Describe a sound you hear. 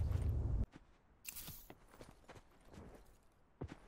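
Footsteps thud on grass.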